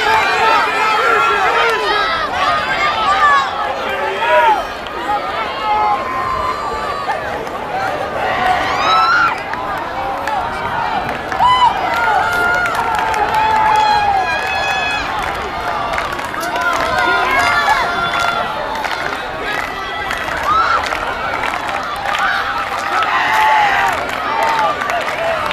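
A crowd of young people cheers and shouts loudly outdoors.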